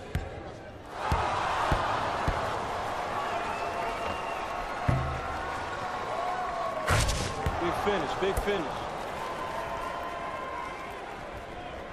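A crowd cheers and roars in a large echoing arena.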